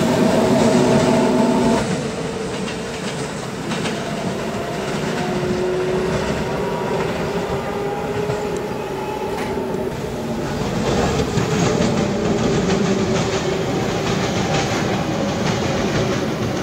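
Steel wheels rumble and clatter on rails.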